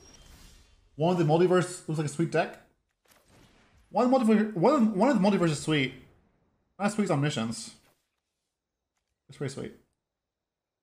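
A man speaks calmly and closely into a microphone, in short bursts.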